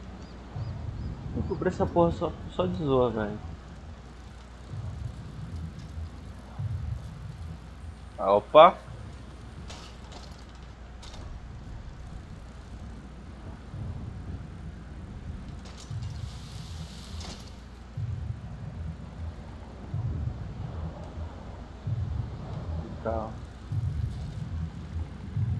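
Bicycle tyres roll over snow.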